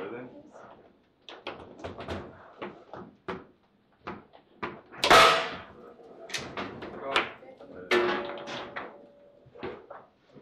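A table football ball knocks sharply against the players and the walls of the table.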